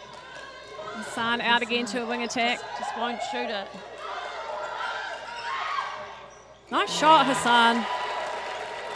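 Young women shout and call out to each other in a large echoing hall.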